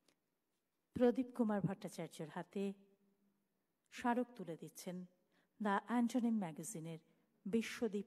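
A woman speaks clearly into a microphone, as if reciting.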